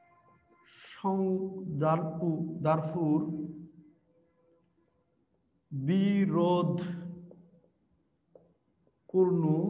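A young man speaks clearly, like a teacher explaining, close by.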